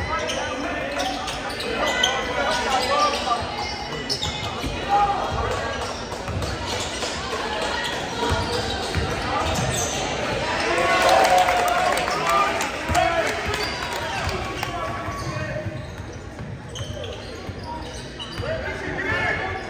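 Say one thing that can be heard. A crowd of spectators chatters and calls out in a large echoing gym.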